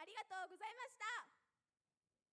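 A young woman speaks brightly into a microphone over loudspeakers.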